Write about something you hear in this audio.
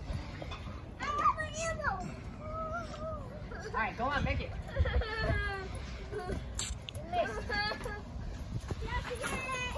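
Children shout and squeal excitedly nearby, outdoors.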